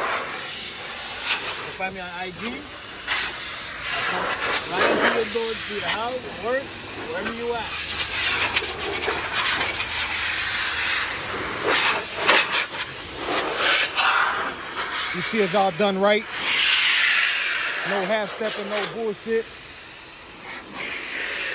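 An air blower hisses loudly through a hose.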